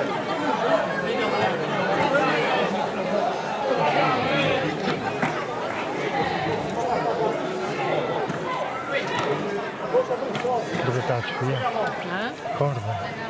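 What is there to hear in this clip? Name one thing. A crowd of men and women chatters and calls out all around outdoors.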